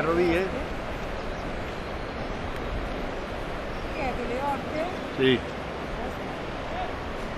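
Floodwater flows with a steady low rush.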